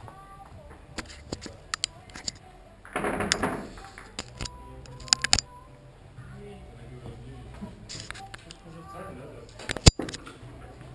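Billiard balls click sharply against each other now and then.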